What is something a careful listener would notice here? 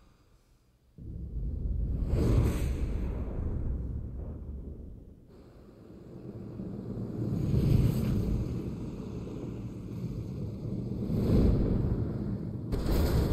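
A fiery object roars as it burns through the air.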